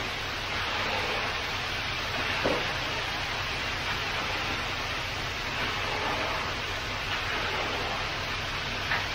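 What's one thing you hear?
Rakes scrape through wet concrete.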